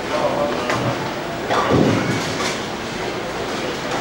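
Bowling pins crash and clatter at the end of a lane.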